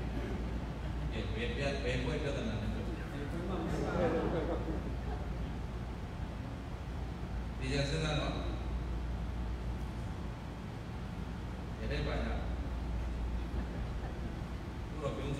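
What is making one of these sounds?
A man speaks calmly and slowly through a microphone in an echoing hall.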